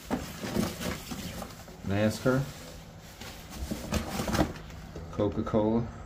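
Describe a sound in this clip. Plastic toy packages rattle and crinkle.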